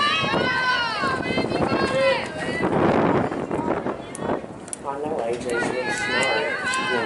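Young girls cheer and shout loudly outdoors.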